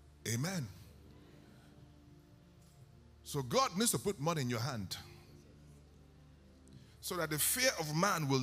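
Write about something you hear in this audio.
A man preaches with animation through a microphone in a large echoing hall, pausing between phrases.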